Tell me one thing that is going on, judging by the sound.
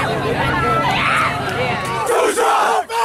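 A young man shouts with excitement, close by.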